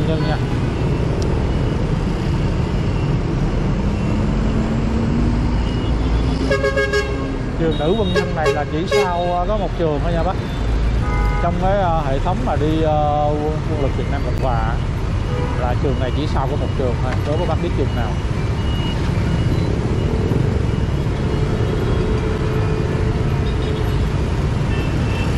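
Busy city traffic rumbles and hums steadily outdoors.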